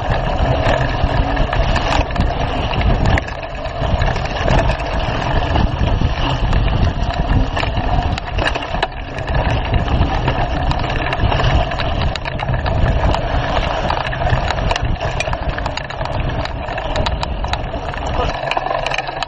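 A bicycle rattles and clatters over bumps.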